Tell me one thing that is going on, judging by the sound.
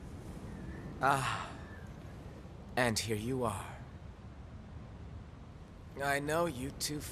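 A man speaks softly and calmly, close by.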